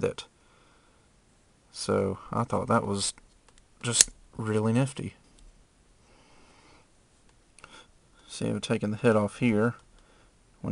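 Small plastic joints click softly as they are turned by hand.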